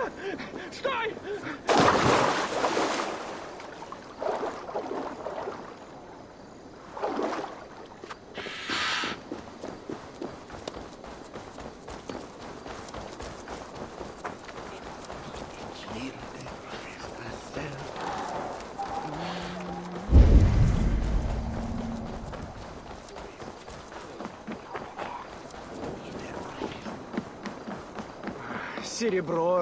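Footsteps run quickly over dirt and wooden planks.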